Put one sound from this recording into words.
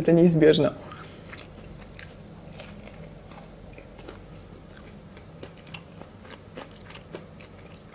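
Crispy food crunches as a young woman bites and chews.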